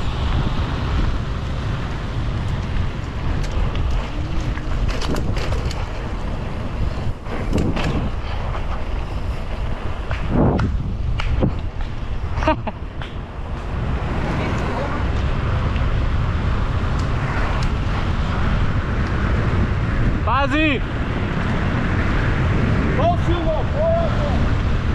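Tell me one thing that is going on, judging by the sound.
Bicycle tyres roll over rough pavement.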